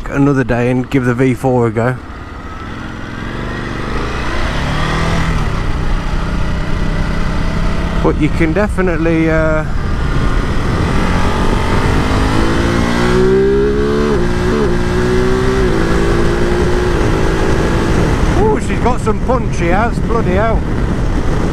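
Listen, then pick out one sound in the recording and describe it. A motorcycle engine revs up and drops in pitch as it shifts through gears.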